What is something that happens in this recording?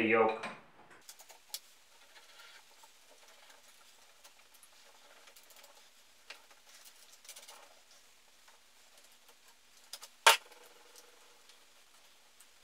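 Metal parts click and clank.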